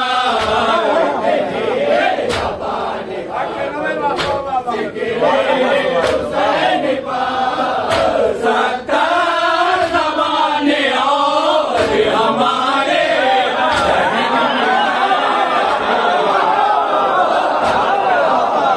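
Men beat their chests.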